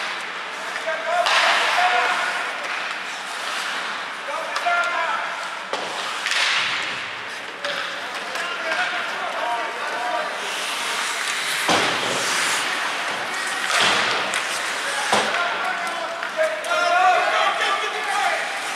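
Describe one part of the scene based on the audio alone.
Young players shout to one another across an echoing rink.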